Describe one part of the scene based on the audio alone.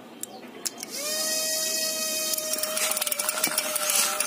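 A small electric motor whirs with a steady high whine.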